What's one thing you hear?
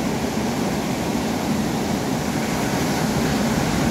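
A wave breaks and crashes into foam close by.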